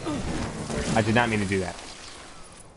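A man grunts loudly as he falls.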